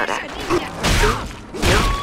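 A heavy blow lands with a wet thud.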